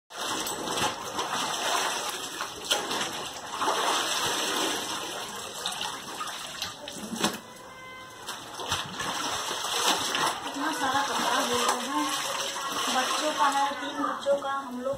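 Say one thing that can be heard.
Water sloshes and splashes as clothes are scrubbed in a tub.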